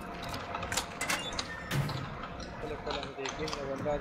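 A metal door creaks open.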